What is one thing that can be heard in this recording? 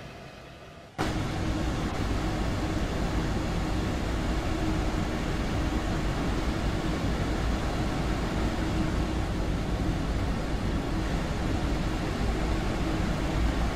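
A train rumbles steadily along the tracks, heard from inside.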